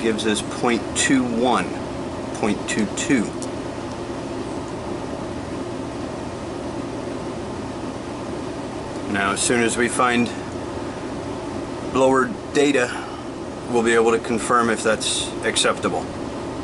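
An air handler blower hums steadily nearby.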